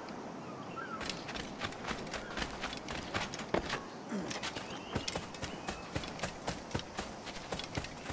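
Footsteps run quickly over sand and grass.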